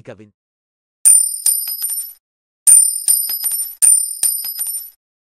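Coins clink and ring as they drop onto a hard surface.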